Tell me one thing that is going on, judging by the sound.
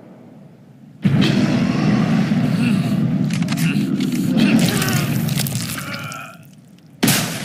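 A bear roars loudly and close by.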